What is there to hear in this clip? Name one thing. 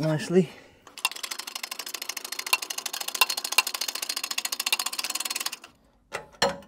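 A ratchet clicks rapidly as a bolt is turned.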